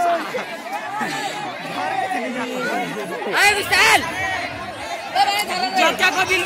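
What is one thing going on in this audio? A crowd of men and women talks and shouts loudly outdoors.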